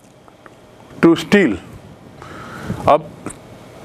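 A middle-aged man speaks calmly and clearly into a microphone.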